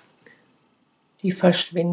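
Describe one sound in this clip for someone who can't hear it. Scissors snip through yarn.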